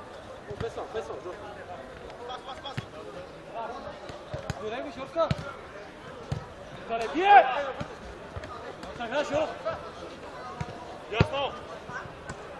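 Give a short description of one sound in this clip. Men shout to each other during a football game outdoors.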